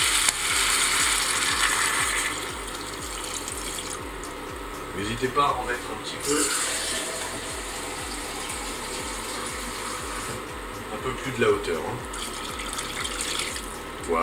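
Water pours into a sizzling pot.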